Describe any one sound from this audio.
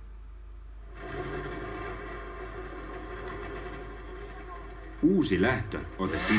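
A man talks with animation close by.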